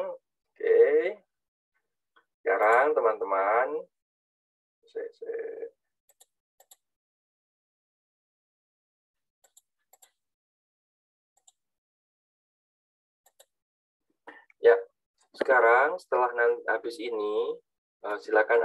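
A man speaks calmly through an online call, with long pauses.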